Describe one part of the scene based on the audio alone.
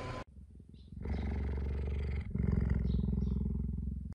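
A cheetah purrs loudly up close.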